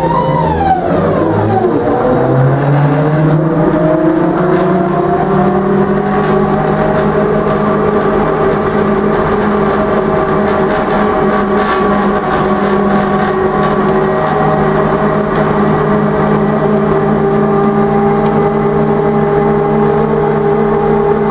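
A tram's electric motor whines, rising in pitch as it speeds up, then holding a steady hum.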